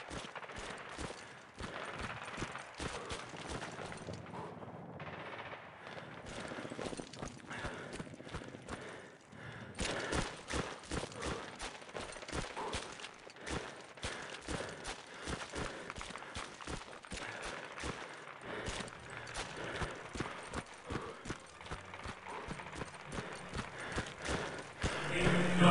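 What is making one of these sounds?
Footsteps thud on dirt.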